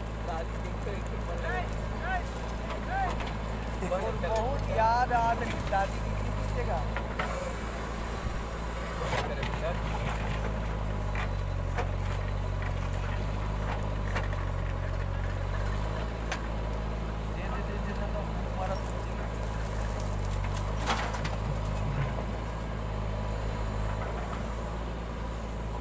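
A diesel engine rumbles steadily outdoors.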